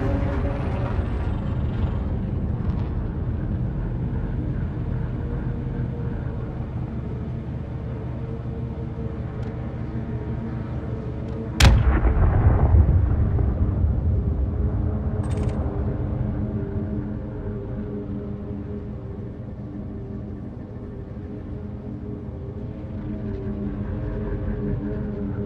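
A spaceship's engines hum with a steady low drone.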